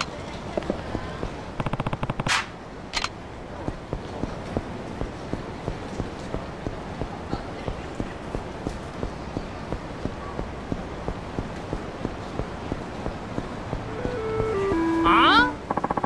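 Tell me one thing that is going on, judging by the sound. Quick footsteps run on pavement.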